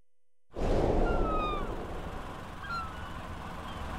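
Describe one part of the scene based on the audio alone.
A seagull cries overhead.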